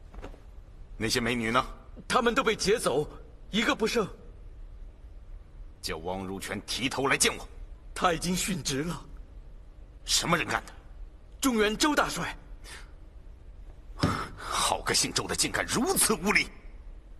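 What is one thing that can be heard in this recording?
A middle-aged man speaks sternly and loudly.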